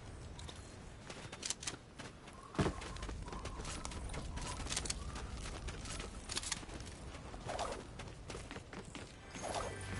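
Footsteps run across sand and wooden boards.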